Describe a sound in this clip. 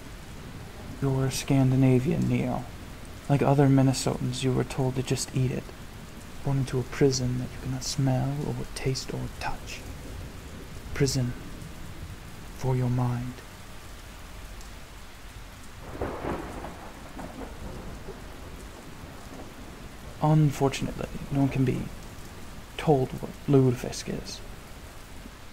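A man speaks slowly and calmly in a deep voice, close by.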